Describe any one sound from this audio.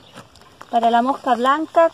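A hand pump sprayer hisses as it sprays.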